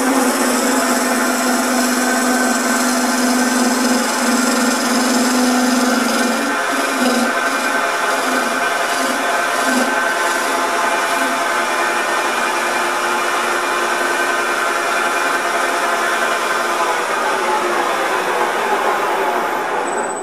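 A wood lathe spins with a steady whirring hum.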